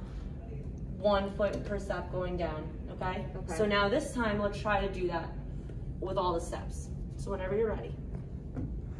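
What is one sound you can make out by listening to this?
A young woman speaks calmly through a mask, close by.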